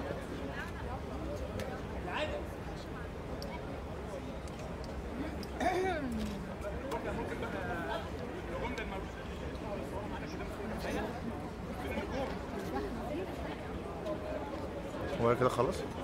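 A crowd of men and women chatter in a large hall.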